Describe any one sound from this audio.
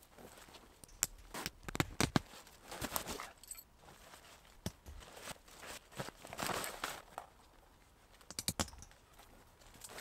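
Footsteps crunch on snowy ground close by.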